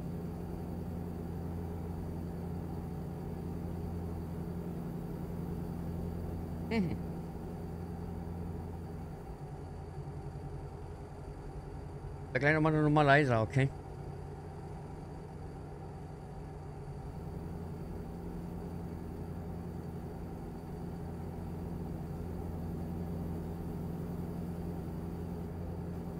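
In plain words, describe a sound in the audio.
A truck engine drones steadily at cruising speed.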